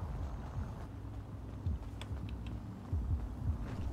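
Footsteps thud quickly on pavement as a person runs.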